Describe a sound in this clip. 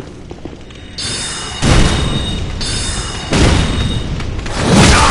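A magic spell crackles and whooshes as it is cast.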